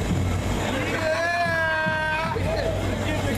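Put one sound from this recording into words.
A man on a parade float shouts out loudly.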